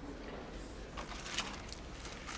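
A mobile phone is set down on a table with a soft knock.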